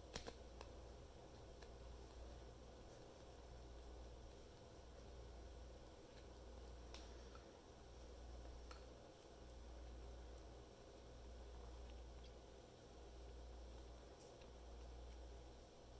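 Rawhide strands rustle and click as hands work them.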